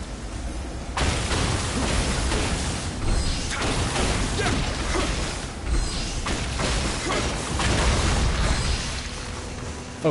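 A sword strikes crystal with sharp, ringing clangs.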